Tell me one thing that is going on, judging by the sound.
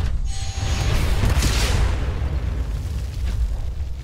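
A jet of air whooshes in a burst.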